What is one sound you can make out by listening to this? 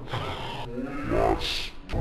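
A young man talks softly close by.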